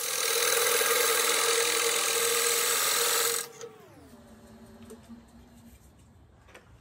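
A lathe motor hums, then winds down to a stop.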